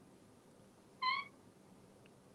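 A parrot gives a short, high whistle.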